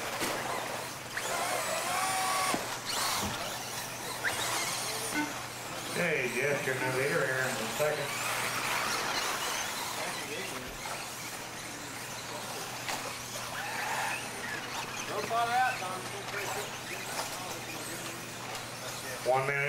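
Small electric motors of radio-controlled cars whine as they race.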